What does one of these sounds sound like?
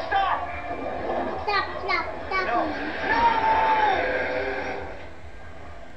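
Young girls talk excitedly close by.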